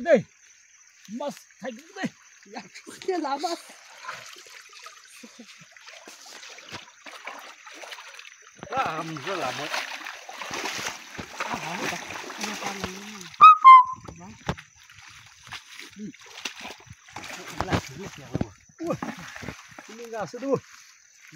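Men talk with animation close by, outdoors.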